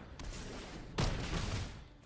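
A game's magic effect bursts with a bright whoosh.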